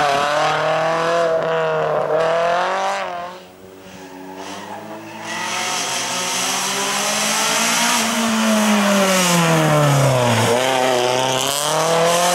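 A car engine roars and revs hard as it accelerates.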